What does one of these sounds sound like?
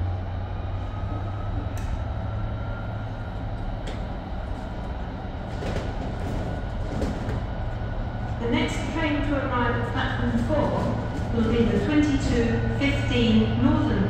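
A train engine hums low and steady as a train rolls slowly into a station.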